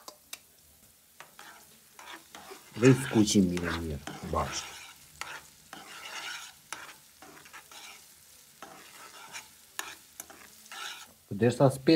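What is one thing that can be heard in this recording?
A metal spoon clinks and scrapes against a frying pan while stirring.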